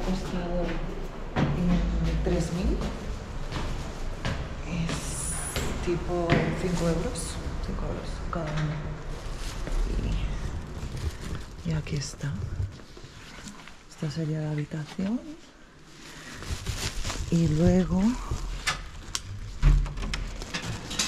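A young woman talks quietly, close by.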